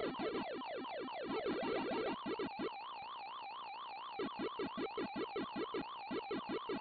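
Chirping 8-bit game sound effects play as dots are eaten.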